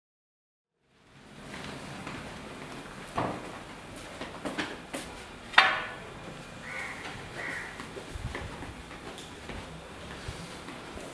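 Footsteps tread across a wooden floor indoors.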